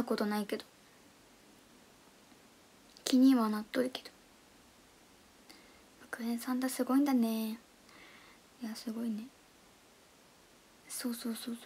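A young woman speaks close to a microphone in short, lively bursts with pauses.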